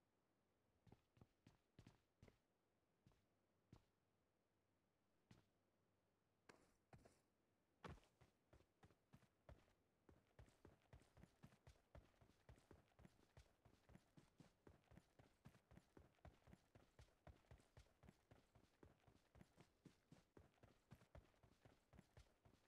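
Footsteps thud along at a steady walk, then quicken into a run.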